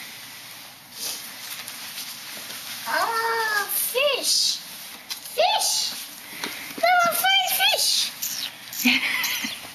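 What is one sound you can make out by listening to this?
Paper crinkles and tears as a child handles an envelope.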